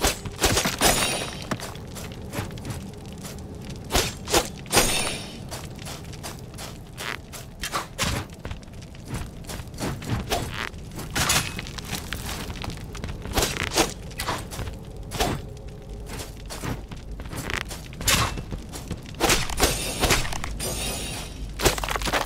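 Skeleton bones clatter and scatter as they break apart.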